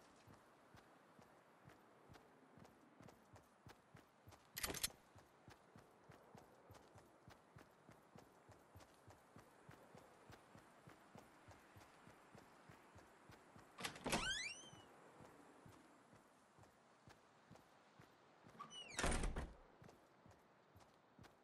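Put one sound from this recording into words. Footsteps run quickly over grass and wooden floor.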